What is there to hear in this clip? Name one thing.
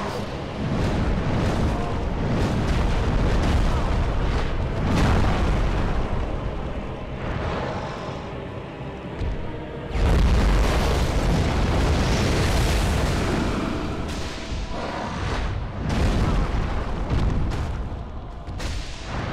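A huge monster roars and crashes about.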